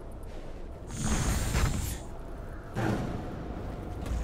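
A fiery spell whooshes and bursts.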